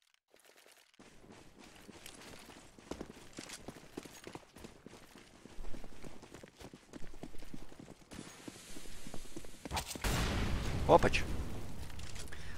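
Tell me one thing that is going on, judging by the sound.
Footsteps tap quickly on hard ground.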